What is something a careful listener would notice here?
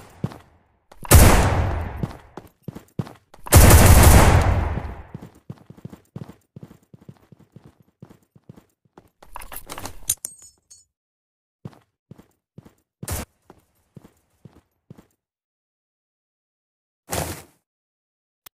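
Gunshots fire in short, loud bursts.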